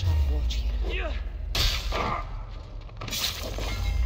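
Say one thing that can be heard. Metal blades clash with sharp ringing strikes.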